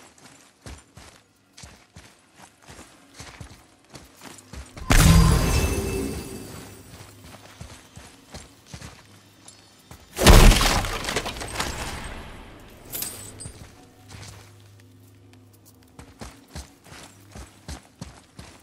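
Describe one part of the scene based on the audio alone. Heavy footsteps thud on a stone floor.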